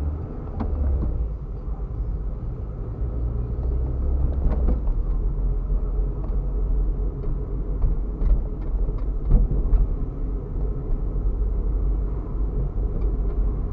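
Tyres roll over the road.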